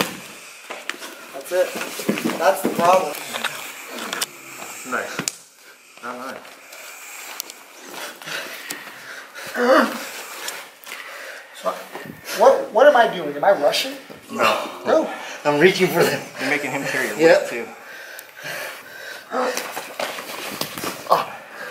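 Bodies shuffle and thump on a padded mat.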